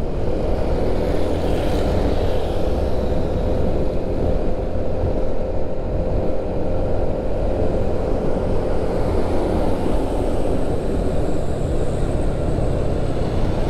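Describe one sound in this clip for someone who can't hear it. Wind rushes loudly past outdoors.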